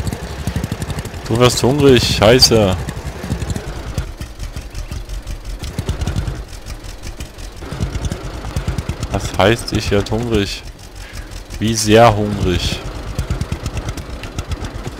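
A small tractor engine chugs steadily.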